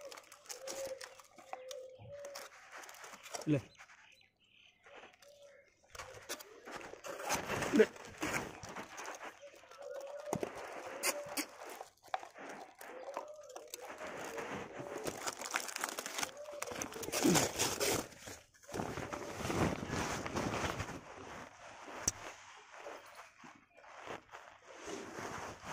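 Several dogs lap and chew food close by.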